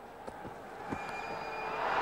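A bat strikes a cricket ball with a sharp knock.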